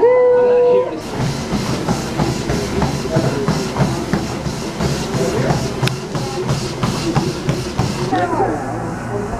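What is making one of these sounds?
Feet pound quickly on a whirring treadmill belt.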